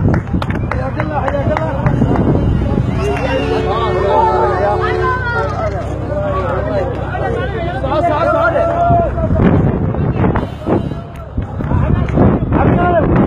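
A crowd of men and women chants and shouts nearby outdoors.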